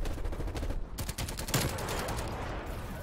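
A submachine gun fires.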